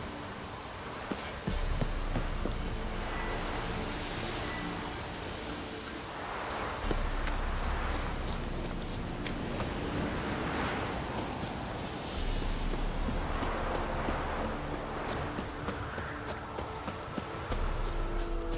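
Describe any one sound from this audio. Footsteps run quickly along a dirt path.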